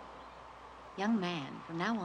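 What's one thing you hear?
A young boy speaks quietly, close by.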